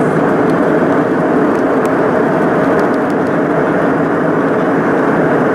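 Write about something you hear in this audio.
A jet engine roars steadily in the cabin of an airliner in flight.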